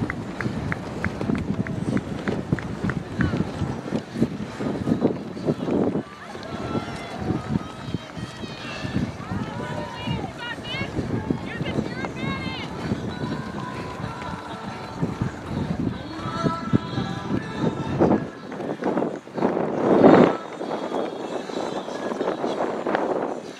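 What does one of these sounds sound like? A crowd of spectators cheers and calls out in the distance.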